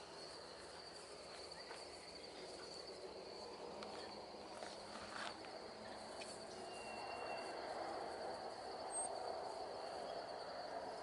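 Dogs scuffle and patter on grass nearby.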